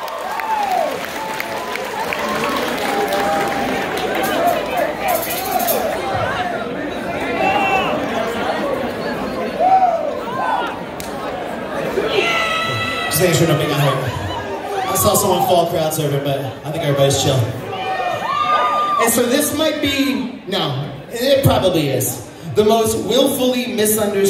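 A rock band plays loudly through big speakers in a large echoing hall.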